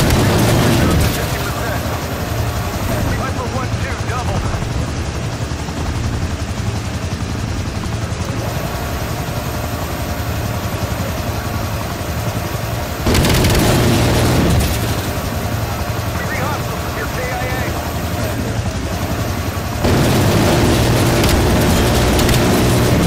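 A rotary machine gun fires in loud, rapid roaring bursts.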